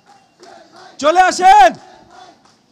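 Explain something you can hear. A man shouts loudly into a microphone.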